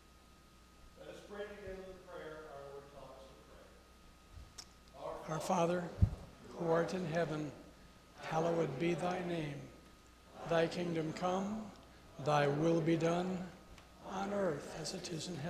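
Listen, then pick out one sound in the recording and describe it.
An elderly man speaks slowly through a microphone, pausing between phrases.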